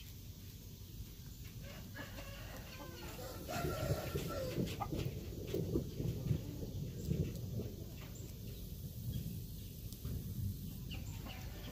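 A rooster pecks and scratches in the grass.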